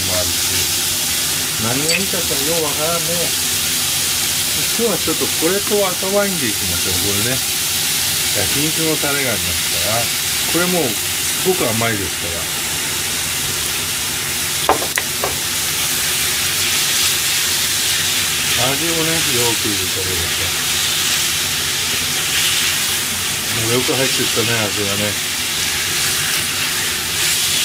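Chopsticks scrape and tap against a frying pan.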